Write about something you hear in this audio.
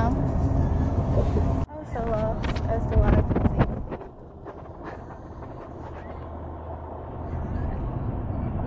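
A car engine hums with a low road rumble from inside a moving car.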